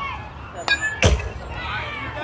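A metal bat cracks against a ball.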